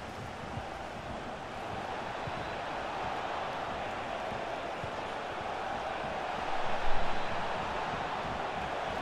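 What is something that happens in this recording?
A large crowd roars steadily in a stadium, swelling loudly for a moment.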